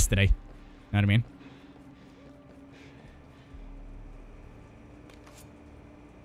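Footsteps shuffle softly on hard ground.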